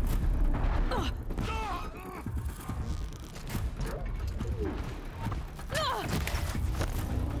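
A man talks into a close microphone with animation.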